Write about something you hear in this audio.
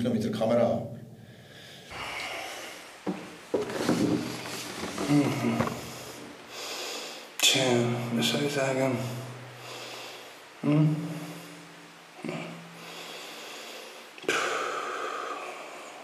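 A young man speaks calmly and quietly, close by.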